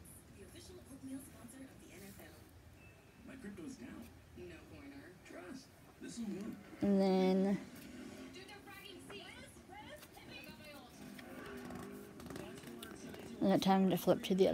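Glossy pages of a book rustle as they turn.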